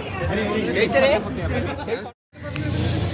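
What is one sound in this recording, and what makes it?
A young man and a young woman talk and laugh close by.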